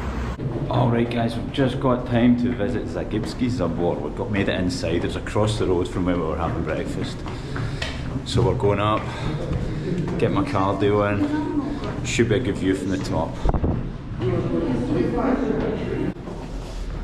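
A young man talks with animation close to the microphone, in an echoing stairwell.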